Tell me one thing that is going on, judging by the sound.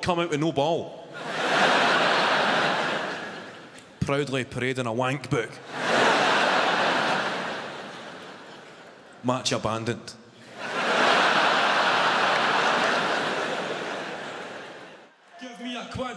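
A large audience laughs and applauds in big waves.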